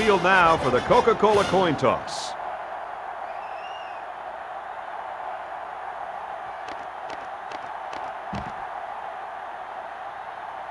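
A stadium crowd murmurs and roars steadily in the distance.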